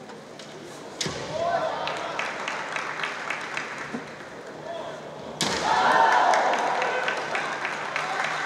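Fighters shout loud, drawn-out battle cries in a large echoing hall.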